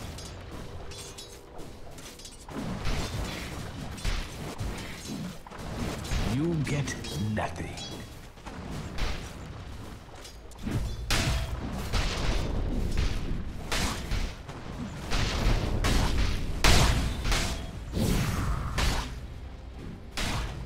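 Spell effects crackle and whoosh in a fast video game battle.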